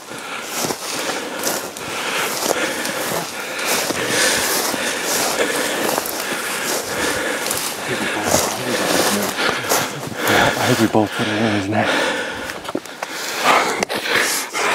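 Footsteps crunch through dry brush and leaves.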